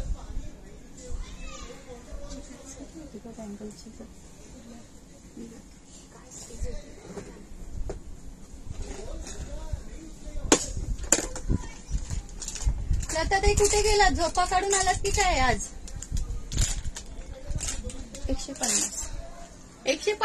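A middle-aged woman talks nearby in a lively way.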